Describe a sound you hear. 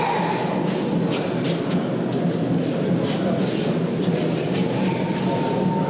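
Men talk to each other nearby.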